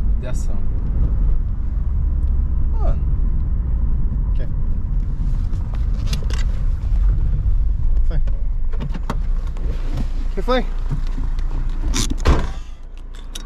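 An engine rumbles low and steady inside a car.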